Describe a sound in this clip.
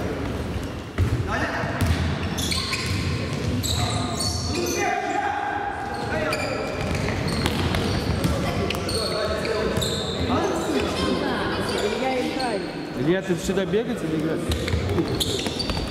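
A ball thuds as it is kicked on a hard floor.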